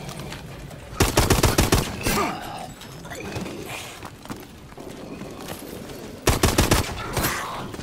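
A pistol fires a rapid burst of shots.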